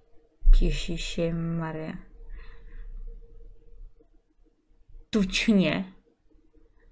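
A young woman speaks emotionally and close to a microphone, with a wail in her voice.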